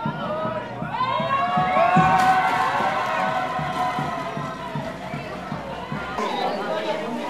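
Children shout and squeal excitedly nearby.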